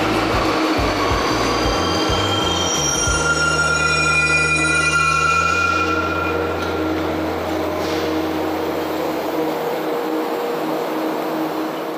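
A subway train rumbles past a platform.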